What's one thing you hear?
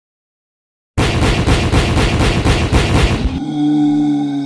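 A game's energy ball bursts with a crackling blast.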